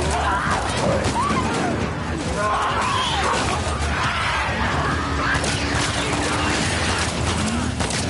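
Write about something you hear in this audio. Gunshots bang sharply.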